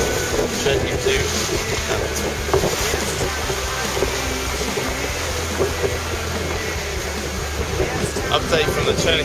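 Strong wind buffets loudly outdoors.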